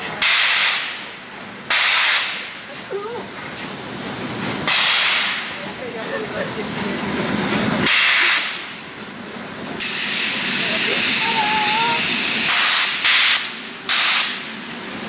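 A steam locomotive puffs loud, sharp bursts of steam.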